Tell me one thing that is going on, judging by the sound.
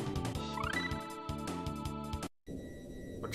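Upbeat retro video game music plays.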